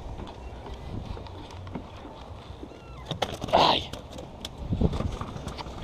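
Plastic tackle boxes clatter and rattle close by.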